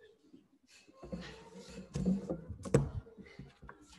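Handling knocks and bumps against a microphone.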